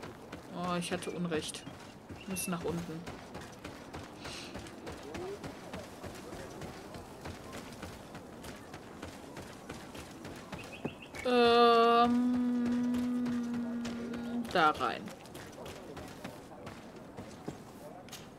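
Footsteps run quickly over dirt and wooden boards.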